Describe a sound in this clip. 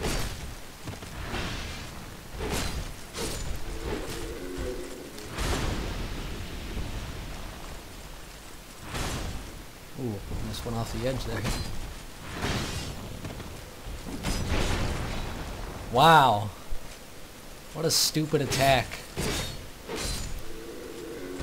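A sword clangs sharply against metal armour again and again.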